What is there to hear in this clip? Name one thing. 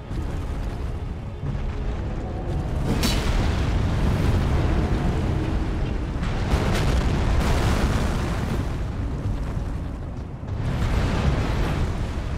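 Heavy footsteps of a giant thud and rumble.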